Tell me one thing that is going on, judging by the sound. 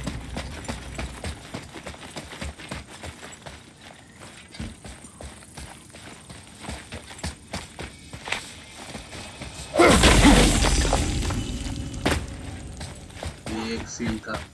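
Heavy footsteps run over stone.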